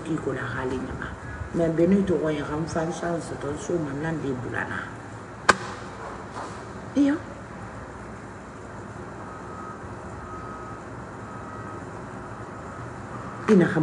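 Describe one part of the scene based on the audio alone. A middle-aged woman speaks emotionally, close to a microphone.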